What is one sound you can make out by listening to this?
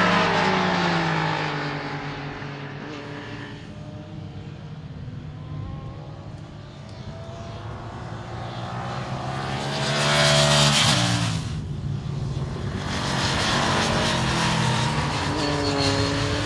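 A motorcycle engine roars and revs as it races past.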